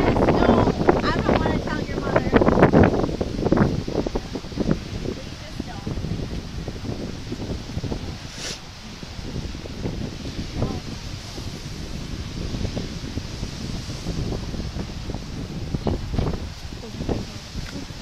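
Waves break against rocks in the distance.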